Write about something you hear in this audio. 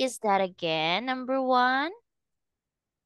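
A young woman speaks clearly and with animation through an online call.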